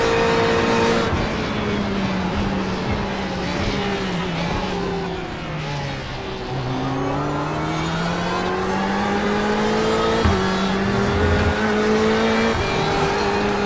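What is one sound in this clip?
A race car's gears shift with sharp jumps in engine pitch.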